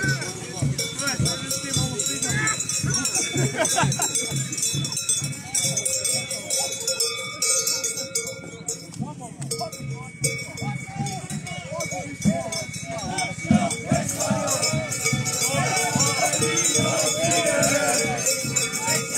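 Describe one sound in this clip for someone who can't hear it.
A crowd of men and women chat and call out nearby outdoors.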